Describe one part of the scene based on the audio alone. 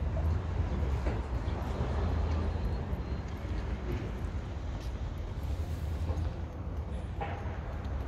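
A man's footsteps tap on paving nearby.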